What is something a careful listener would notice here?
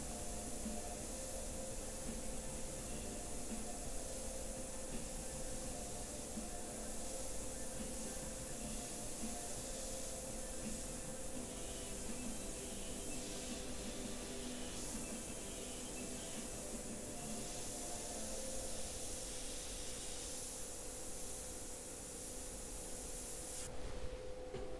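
An airbrush hisses steadily.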